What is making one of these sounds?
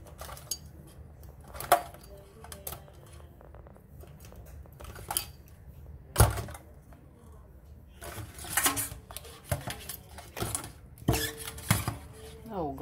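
Plastic tongs knock and scrape against a metal sink.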